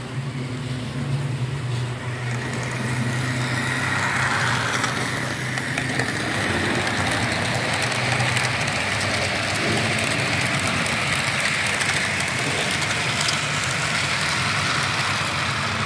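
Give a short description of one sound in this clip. A model train hums and rattles steadily along its track, with small clicks over the rail joints.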